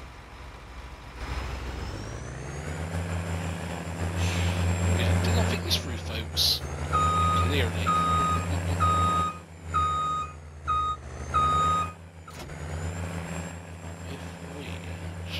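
A tractor engine starts and rumbles steadily.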